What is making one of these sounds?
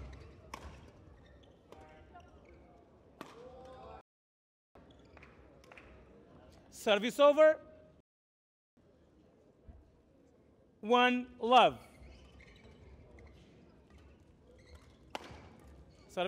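A racket strikes a shuttlecock with sharp smacks.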